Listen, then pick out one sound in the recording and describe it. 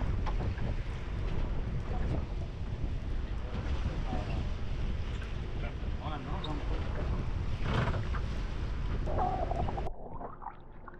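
Wind rushes and buffets loudly outdoors.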